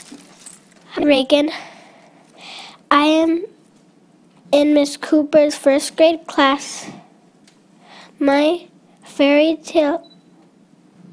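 A young girl speaks haltingly into a microphone, heard over a loudspeaker in a large room.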